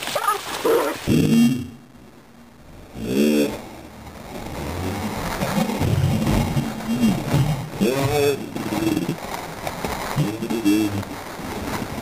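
Dogs bark and yelp excitedly.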